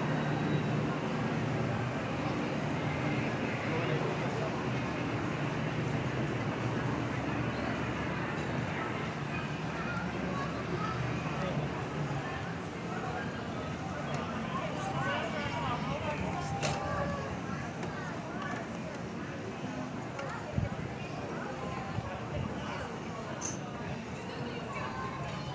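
A crowd of people chatters outdoors around the listener.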